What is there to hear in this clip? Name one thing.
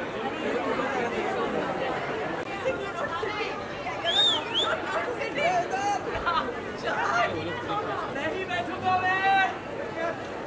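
A crowd of women chatter and laugh loudly all around.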